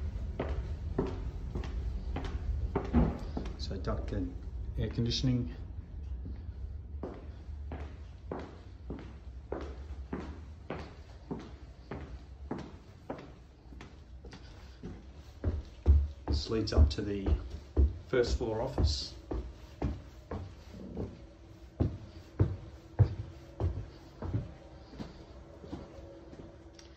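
Footsteps walk steadily across a hard floor and then down carpeted stairs.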